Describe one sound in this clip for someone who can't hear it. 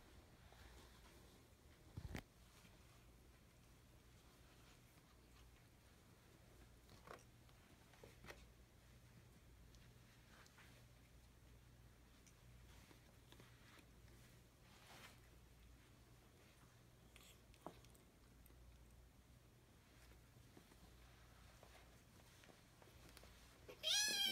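Two cats scuffle and tussle on a hard floor, with soft thumps.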